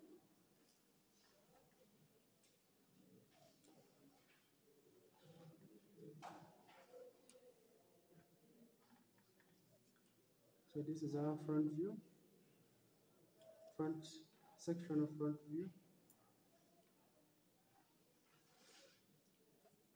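A plastic ruler slides and taps on paper.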